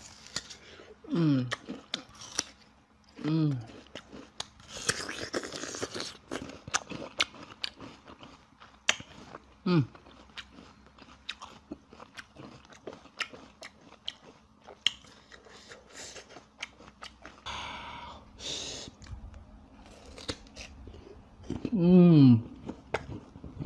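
A young man makes short humming sounds while eating.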